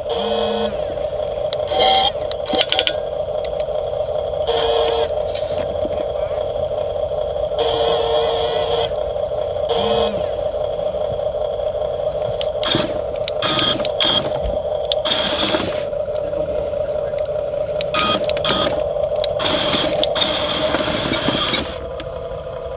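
Small electric motors whine steadily as a toy excavator moves its arm and turns.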